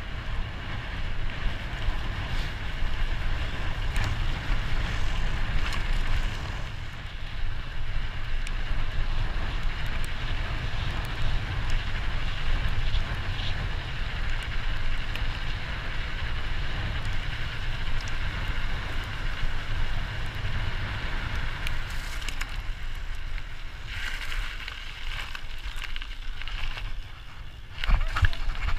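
Bicycle tyres crunch and rattle over a rough gravel track.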